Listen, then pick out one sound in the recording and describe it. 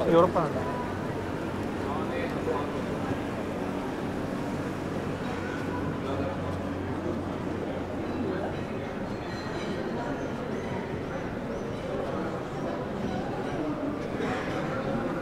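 A crowd of pedestrians chatters in the distance outdoors.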